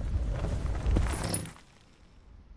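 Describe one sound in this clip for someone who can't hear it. Wind rushes loudly, then cuts off.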